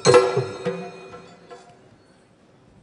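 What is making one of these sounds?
Drums and a cymbal strike loudly and ring out.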